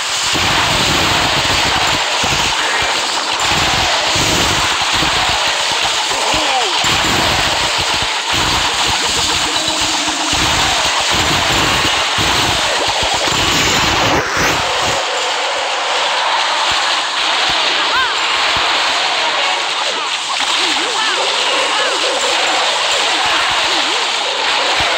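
Cartoonish battle sounds of blasts and crashes rumble on without a break.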